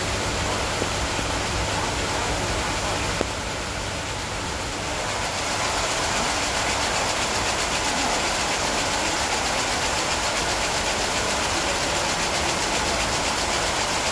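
Industrial machinery roars loudly and steadily.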